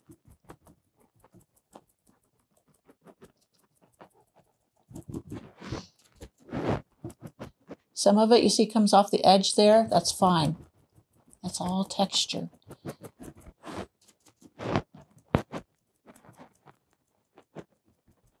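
A sponge dabs paint onto a canvas with soft, quick taps.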